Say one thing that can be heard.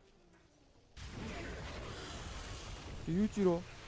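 Magic spells whoosh and crackle in a video game battle.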